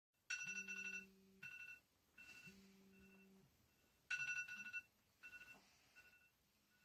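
A phone alarm beeps in short bursts.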